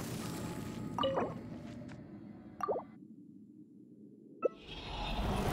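A short electronic chime rings out a few times.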